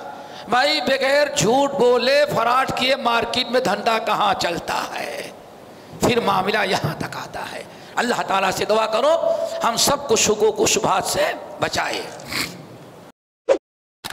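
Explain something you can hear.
An elderly man speaks with animation into a headset microphone.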